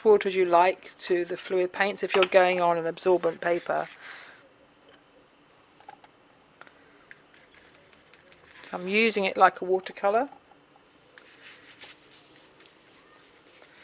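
A stiff brush scrapes and dabs on a rough surface.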